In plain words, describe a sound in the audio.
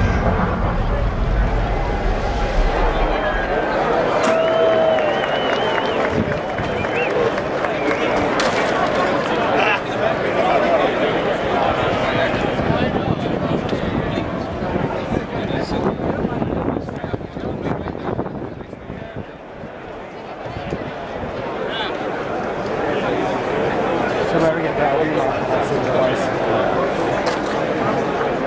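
A large crowd of men and women chatters loudly all around outdoors.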